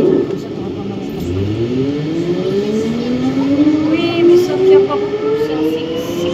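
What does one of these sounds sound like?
The electric motors of a rubber-tyred VAL metro train whine and rise in pitch as it pulls away from a station into a tunnel.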